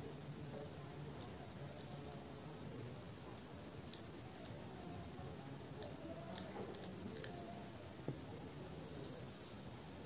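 Metal tweezers click faintly.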